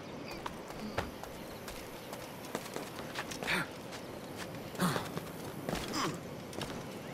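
A character's hands and feet knock against wood while climbing.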